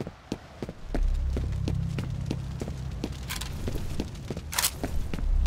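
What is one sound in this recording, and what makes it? A fire roars and crackles nearby.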